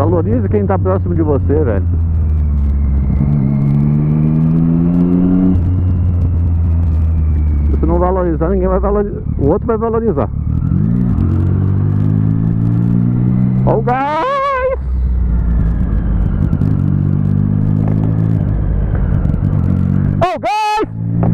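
A motorcycle engine drones close by, revving up and down as it rides through traffic.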